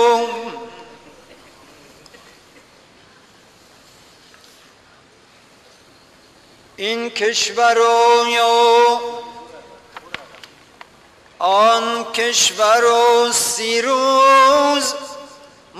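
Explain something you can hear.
A man chants a slow, wavering melody through a loudspeaker in a large echoing hall.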